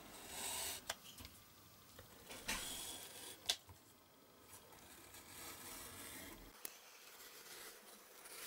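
A craft knife scrapes and cuts along cardboard.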